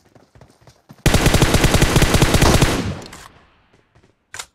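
A rifle fires a loud rapid burst, ringing out afterwards.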